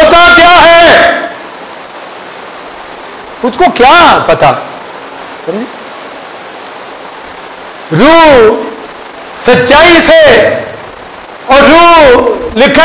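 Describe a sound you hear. A middle-aged man preaches loudly and with passion into a microphone, in bursts with pauses, in an echoing hall.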